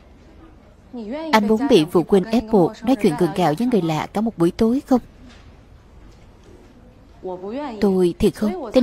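A young woman speaks up close, with feeling.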